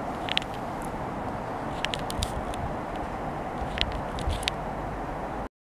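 A train rumbles steadily as it approaches from a distance.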